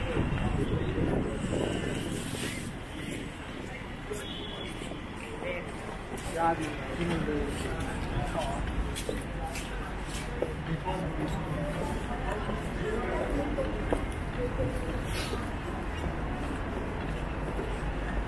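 Traffic rumbles steadily nearby.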